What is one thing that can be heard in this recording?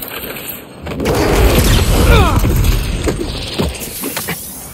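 A fire roars in a burst of flame.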